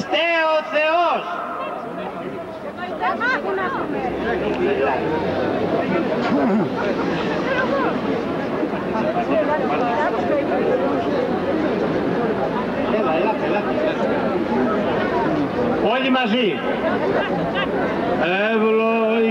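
An elderly man speaks forcefully through a loudspeaker outdoors.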